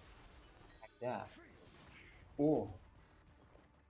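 Sharp magical attack effects whoosh and crash in bursts.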